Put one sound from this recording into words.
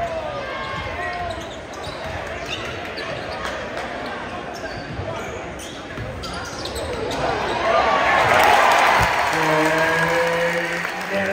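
A large crowd cheers and shouts in an echoing gym, swelling loudly.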